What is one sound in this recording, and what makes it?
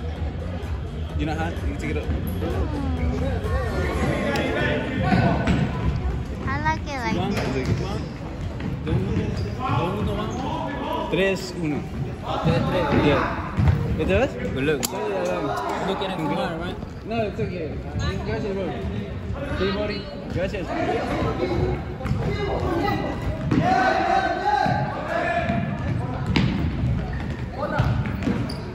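Young men shout and call out to each other across a large echoing gym.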